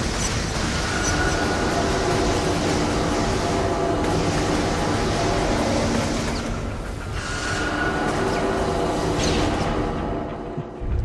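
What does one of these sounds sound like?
Game music plays loudly with heavy, tense tones.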